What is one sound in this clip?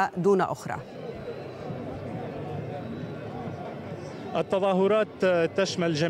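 A crowd murmurs and talks.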